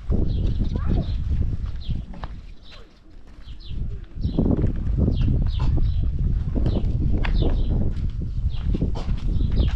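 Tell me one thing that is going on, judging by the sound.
Footsteps crunch on dry dirt outdoors.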